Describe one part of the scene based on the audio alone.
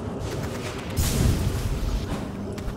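A loud whooshing burst strikes and rings out.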